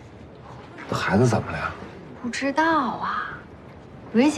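A second young woman answers in a puzzled voice.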